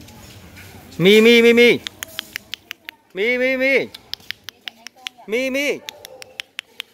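Young children call out to each other, shouting.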